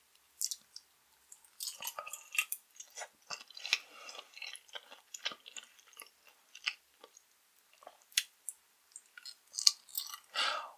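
A woman bites into soft jelly candy close to a microphone.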